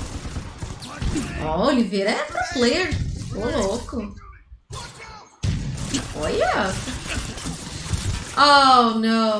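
A young woman talks with animation into a microphone, close by.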